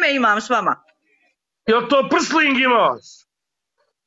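A man talks through an online call.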